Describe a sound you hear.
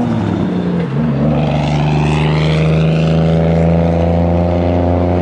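Tyres squeal on the road surface.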